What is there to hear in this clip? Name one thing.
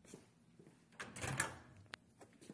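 A microwave door clicks open.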